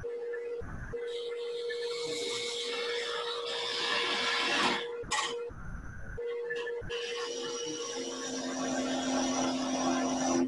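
A gouge scrapes and hisses against spinning wood.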